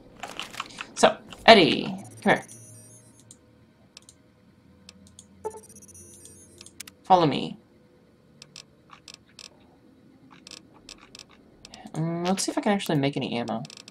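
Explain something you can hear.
A small robot makes warbling electronic beeps.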